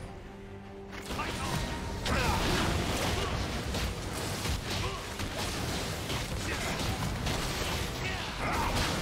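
Game combat sound effects clash and burst.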